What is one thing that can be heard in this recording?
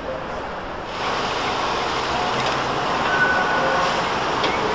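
A tram rolls past with a rushing, rumbling noise.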